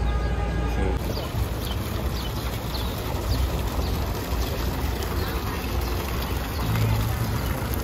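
Water from a fountain splashes into a pool.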